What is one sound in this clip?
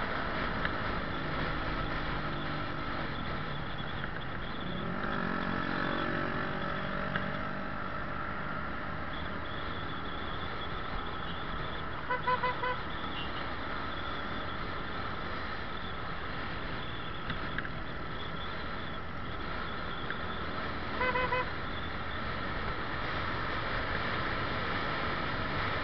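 Traffic rumbles along the road nearby.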